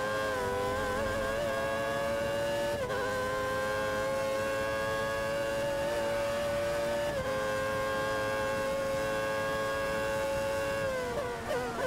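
A racing car engine screams at high revs, rising through the gears with brief dips at each gear change.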